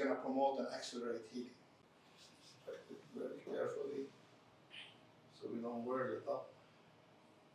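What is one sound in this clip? A middle-aged man speaks calmly and clearly, close by.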